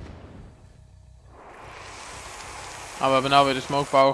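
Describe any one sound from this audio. A crackling burst of energy whooshes loudly.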